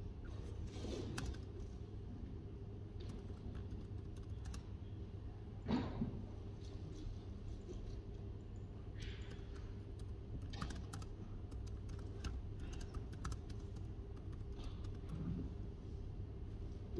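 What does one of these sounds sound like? Fingers tap quickly on a laptop keyboard.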